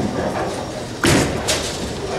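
A bowling ball thuds down onto a wooden lane.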